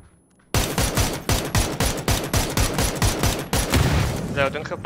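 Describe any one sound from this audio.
A rifle fires rapid, sharp shots.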